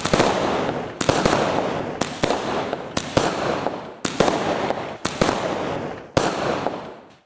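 Fireworks shoot up and burst with loud cracks, one after another.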